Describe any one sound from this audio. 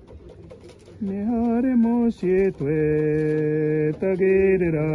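A man sings loudly in long, held notes close by.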